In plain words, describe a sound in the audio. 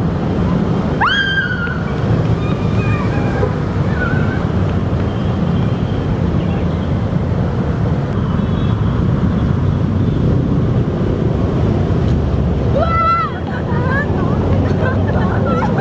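A woman shrieks in fright nearby.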